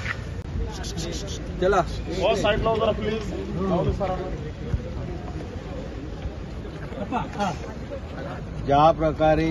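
Several men shout and talk excitedly nearby.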